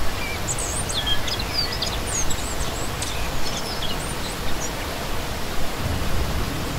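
A shallow stream splashes and gurgles steadily over rocks.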